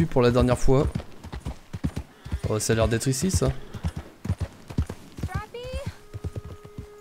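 A horse's hooves thud steadily along a dirt track.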